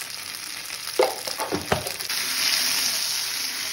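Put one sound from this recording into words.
A metal spoon knocks and scrapes against a pan while stirring.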